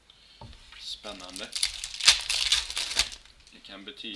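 A foil pack crinkles and rustles as hands tear it open.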